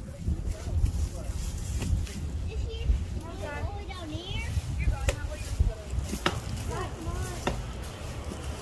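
Children call out to each other at a distance outdoors.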